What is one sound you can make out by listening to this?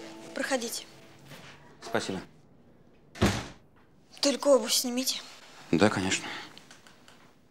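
A young woman speaks quietly nearby.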